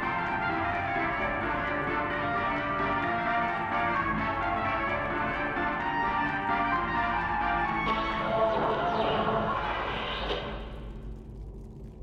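An old radio plays crackly music that fades away.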